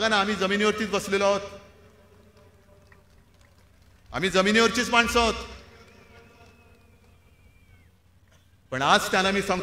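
A middle-aged man speaks forcefully into a microphone over loudspeakers, pausing between phrases.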